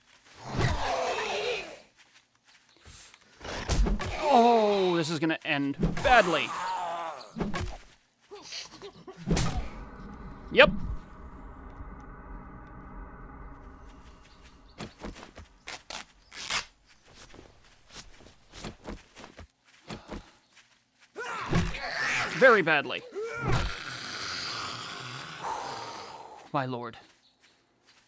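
Zombies snarl and groan close by.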